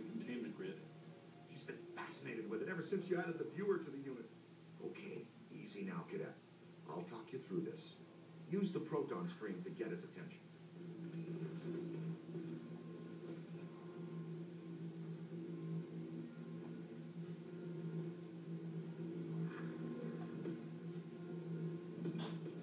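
A television plays a game's sound through loudspeakers in the room.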